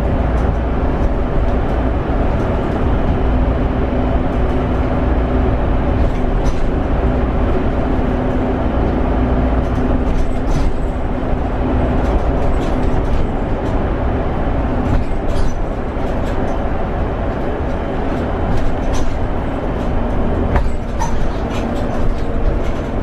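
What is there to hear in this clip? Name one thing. A vehicle's engine hums steadily from inside the cab.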